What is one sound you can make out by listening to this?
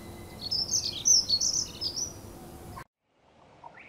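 A small songbird sings a high, quick warbling song.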